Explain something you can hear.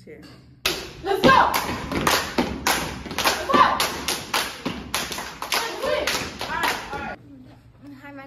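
A group of girls clap and stomp in rhythm.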